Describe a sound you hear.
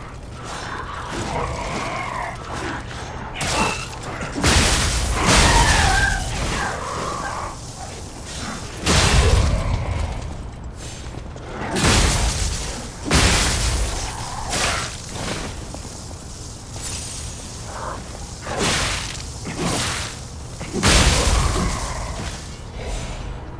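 Blades swish and clash in a sword fight.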